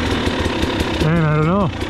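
A dirt bike engine revs up sharply and then drops.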